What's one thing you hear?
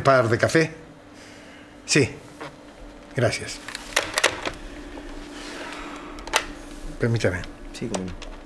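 A middle-aged man speaks into a telephone in short, tense phrases.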